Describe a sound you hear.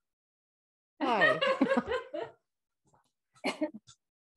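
A woman speaks cheerfully and with animation close to a microphone.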